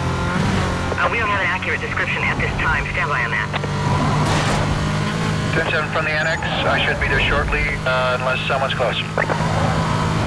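Tyres screech as a car skids through turns.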